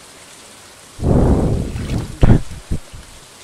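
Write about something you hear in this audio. A fishing lure splashes into water.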